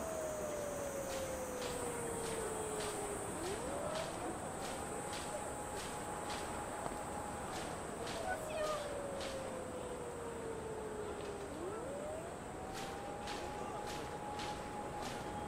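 Footsteps tap steadily on paving stones.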